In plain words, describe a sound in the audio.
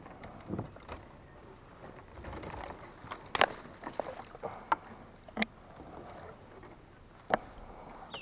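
Leafy branches rustle and snap as they are pushed aside.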